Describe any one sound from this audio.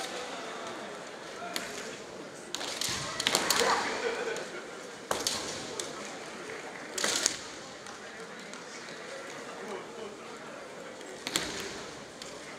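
Bamboo swords clack and strike against each other sharply.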